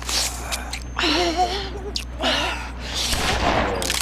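A blade stabs and slashes into flesh.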